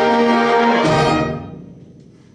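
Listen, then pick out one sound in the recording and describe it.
A band holds a loud chord and cuts it off.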